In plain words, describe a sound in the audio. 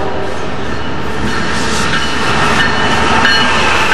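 A diesel locomotive roars past.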